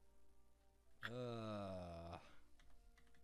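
A bright electronic chime rings out briefly.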